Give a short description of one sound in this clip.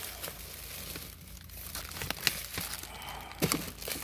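A plastic-wrapped package crackles as it is handled.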